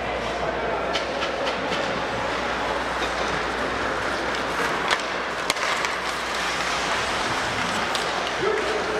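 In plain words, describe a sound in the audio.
Hockey sticks clack sharply against the puck.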